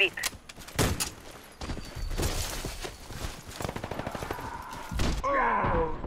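Rifle shots crack sharply in bursts.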